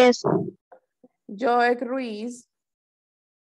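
A young girl speaks over an online call.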